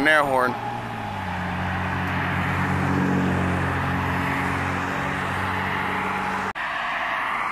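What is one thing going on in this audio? A school bus engine rumbles as the bus turns past.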